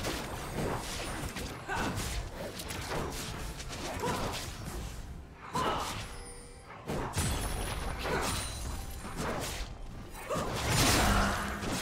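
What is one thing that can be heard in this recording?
Magic spells whoosh and crackle in a fast, chaotic fight.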